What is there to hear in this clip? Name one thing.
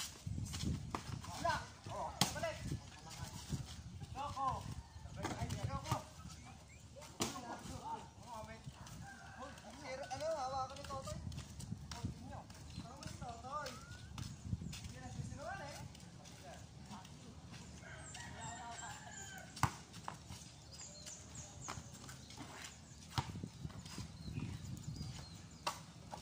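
A basketball bounces on a dirt court.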